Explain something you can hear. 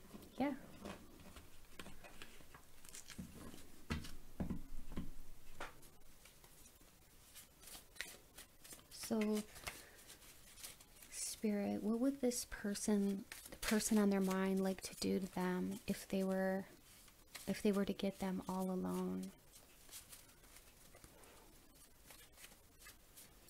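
Playing cards rustle and flick between hands.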